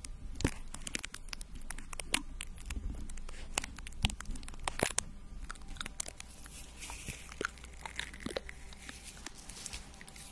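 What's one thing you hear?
Fingernails tap and scratch on a microphone, close and crisp.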